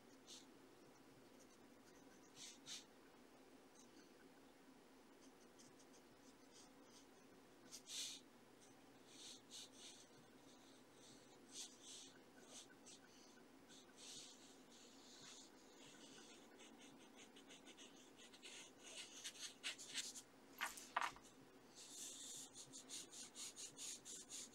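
A pencil scratches and scrapes on paper up close.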